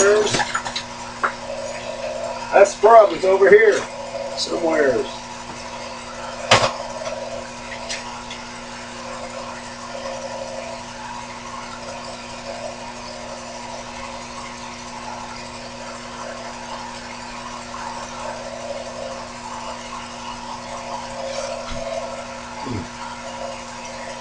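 A small lathe motor hums steadily.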